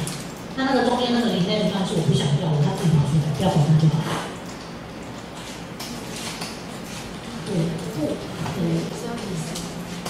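A young woman speaks with animation through a microphone and loudspeaker in an echoing room.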